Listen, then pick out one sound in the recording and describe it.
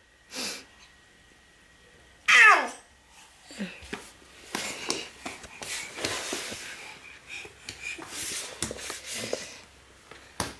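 A toddler squeals and babbles close by.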